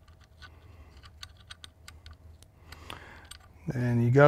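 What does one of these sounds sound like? Small metal parts click and tap.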